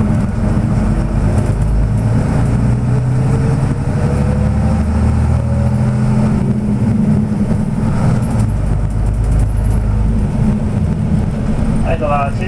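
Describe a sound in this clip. Cars and trucks pass close by on the road.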